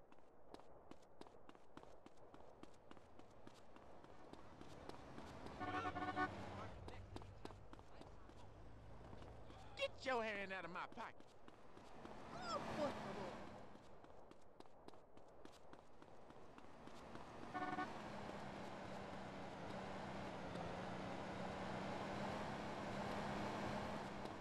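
Footsteps run quickly and steadily on pavement.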